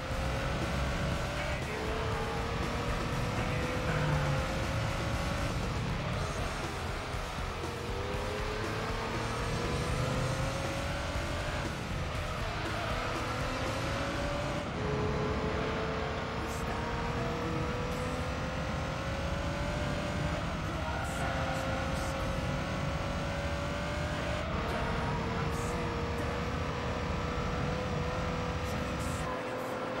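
A video game car engine whines, climbing in pitch and dropping back with each gear change.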